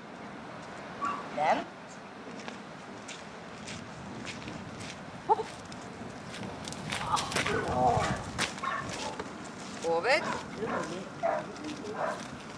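A man speaks encouragingly to a dog outdoors.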